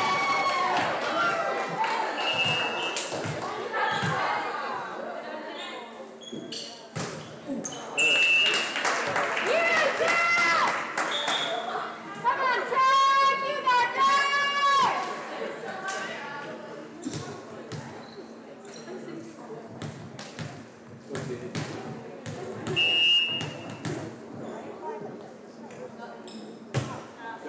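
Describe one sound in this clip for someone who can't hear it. Young women on a team shout and cheer in a large echoing gym.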